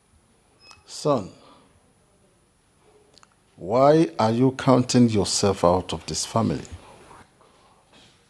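An elderly man speaks firmly and with feeling, close by.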